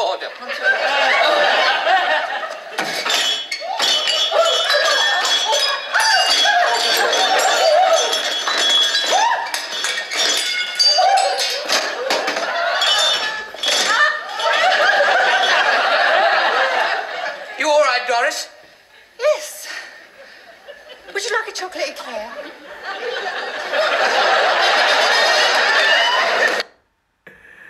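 A young man laughs loudly and heartily, close by.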